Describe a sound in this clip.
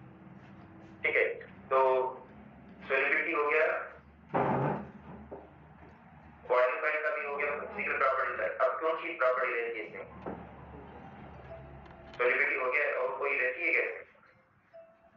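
A middle-aged man speaks steadily into a headset microphone, in short bursts with pauses.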